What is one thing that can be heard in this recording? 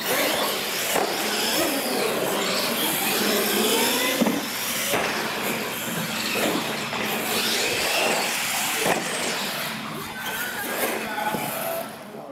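Plastic wheels clatter and bump on a hard floor.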